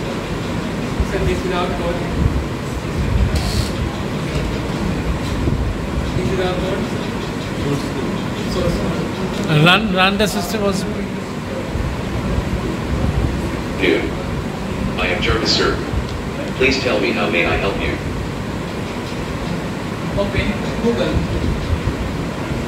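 A teenage boy speaks calmly nearby.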